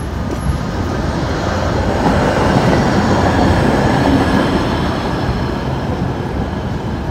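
A tram rumbles past.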